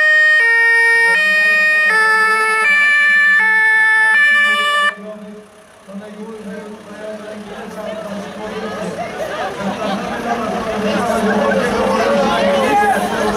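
A van's engine hums as the vehicle rolls slowly past close by.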